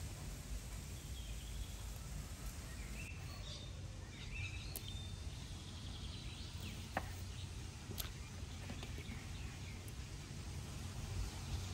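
Broccoli florets snap and crunch as they are broken off.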